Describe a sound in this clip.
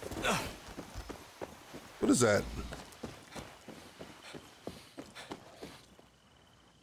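Footsteps walk steadily across stone.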